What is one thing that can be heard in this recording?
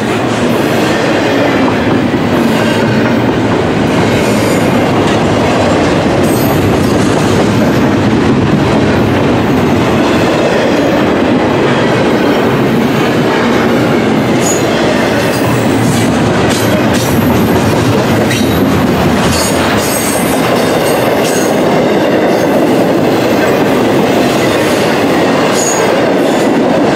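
A long freight train rumbles past close by, steady and loud.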